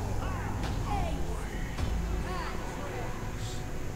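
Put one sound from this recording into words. Video game combat effects clash and whoosh.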